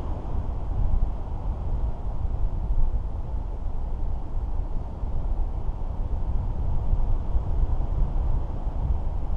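Wind buffets a microphone loudly and steadily, outdoors high in the air.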